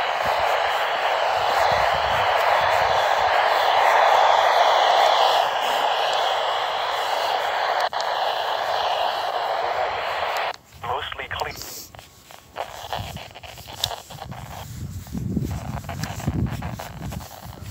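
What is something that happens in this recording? Footsteps scuff on asphalt.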